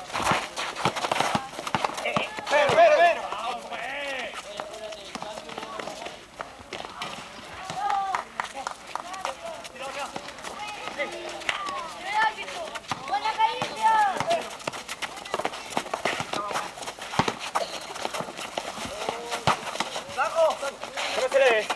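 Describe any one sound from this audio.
A basketball bounces on pavement.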